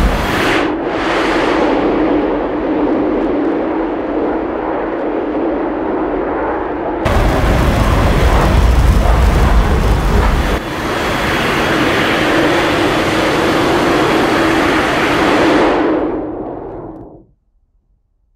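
A jet engine roars steadily, then cuts off.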